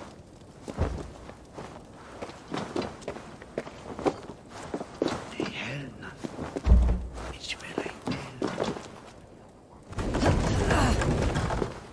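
Footsteps tread slowly on hard ground.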